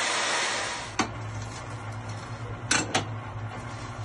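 Metal clanks sharply twice on a drill stand.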